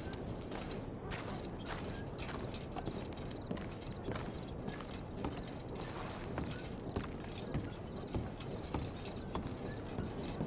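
Footsteps thud steadily on a wooden boardwalk.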